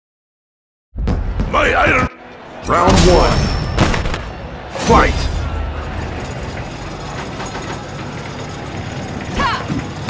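A crowd cheers and murmurs in the background.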